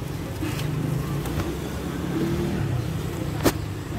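A stack of newspapers rustles as it drops onto loose cabbage leaves.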